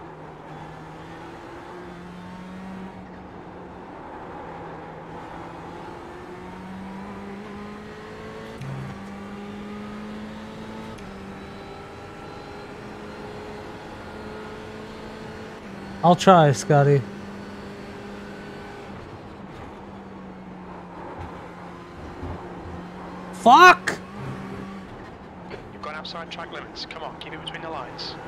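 A racing car engine drones and shifts pitch as the car accelerates and brakes.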